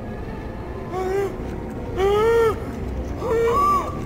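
A creature lets out long, wailing moans.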